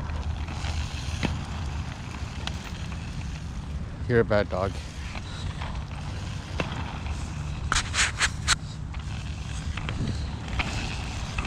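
Inline skate wheels rumble steadily over rough asphalt.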